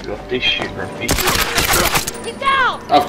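Rapid gunshots ring out close by.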